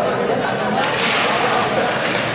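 A puck is struck with a stick.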